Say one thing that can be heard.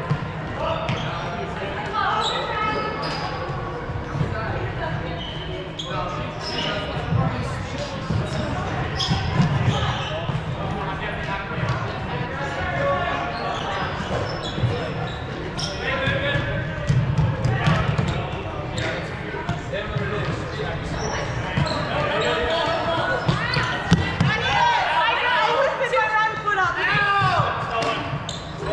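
Footsteps thud as players run across a wooden floor.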